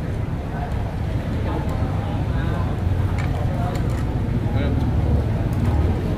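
A middle-aged woman talks casually nearby.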